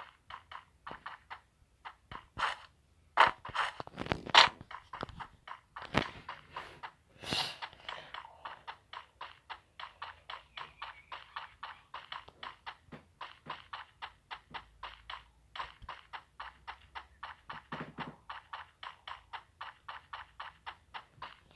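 Footsteps of a running game character thud quickly and evenly on hard ground.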